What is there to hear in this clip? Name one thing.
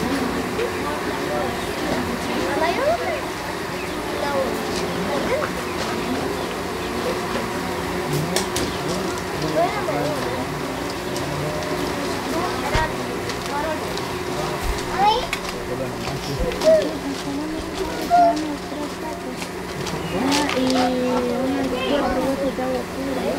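A crowd of people chats in the background outdoors.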